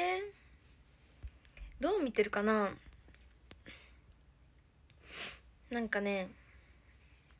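A young woman speaks softly and playfully close to a phone microphone.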